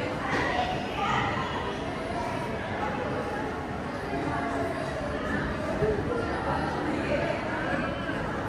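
Footsteps tap on a glass floor.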